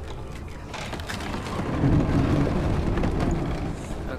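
A heavy stone door grinds and rumbles open.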